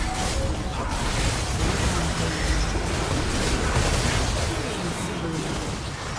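Video game combat sound effects of spells and hits crash and whoosh.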